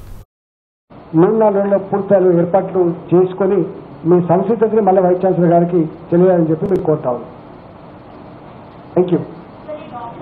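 A middle-aged man speaks steadily into a microphone.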